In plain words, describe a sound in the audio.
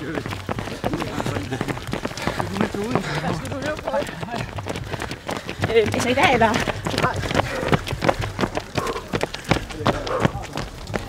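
Many running footsteps patter on asphalt close by.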